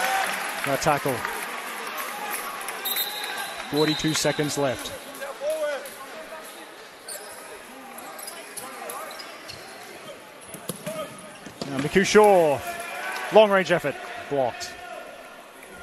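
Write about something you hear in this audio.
Men shout loudly across a large echoing indoor hall.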